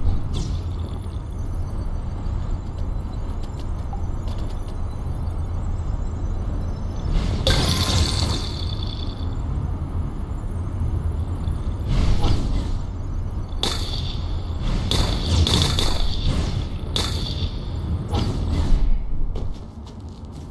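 A low rushing whoosh of gliding at speed rises and falls.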